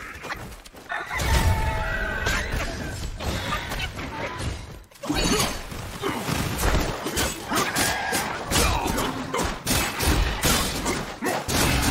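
A huge beast roars and growls.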